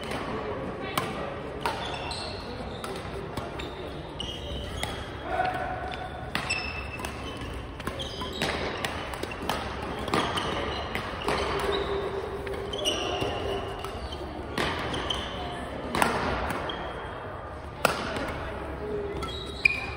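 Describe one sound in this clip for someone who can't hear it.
Shuttlecocks are hit with rackets, with sharp pops.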